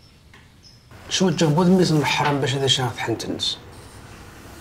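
A man speaks earnestly and close by.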